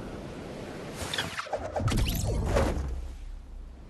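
A glider snaps open with a loud whoosh.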